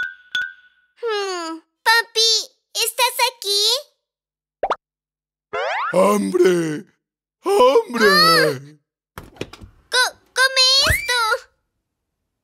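A cartoon child's voice speaks with animation through a loudspeaker.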